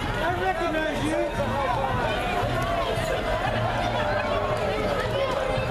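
A crowd of men and women chatter and call out nearby outdoors.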